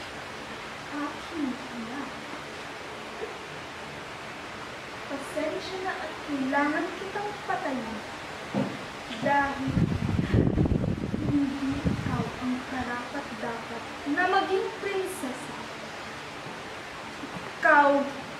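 A young woman speaks close by, slowly and with feeling.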